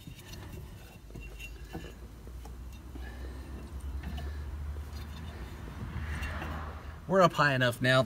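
A jack's crank handle turns with a low grinding rattle.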